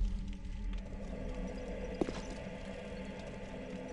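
Armoured footsteps clank on a stone floor.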